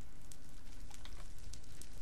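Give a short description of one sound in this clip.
A fire crackles softly.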